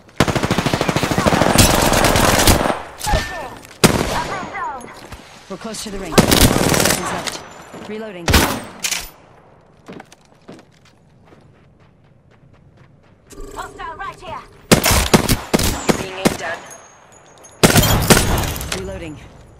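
Automatic gunfire rattles in rapid, loud bursts.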